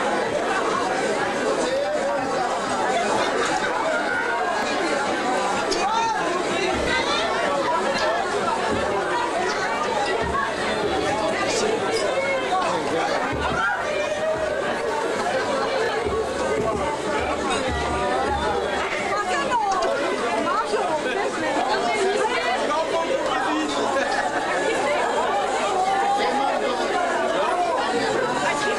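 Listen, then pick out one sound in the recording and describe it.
A crowd of men and women chatter loudly all around in a busy room.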